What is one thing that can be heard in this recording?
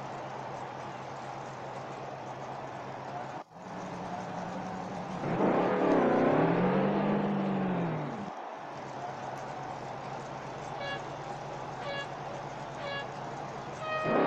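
A race car engine idles with a steady rumble.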